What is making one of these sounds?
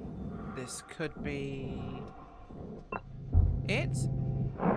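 An electronic panel chirps with rising bleeps.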